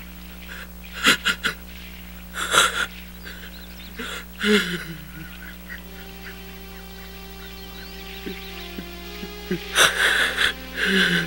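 A middle-aged man sobs and wails loudly nearby.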